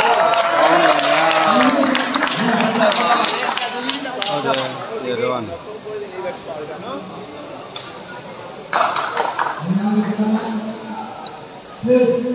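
A crowd of spectators chatters and shouts in a large echoing hall.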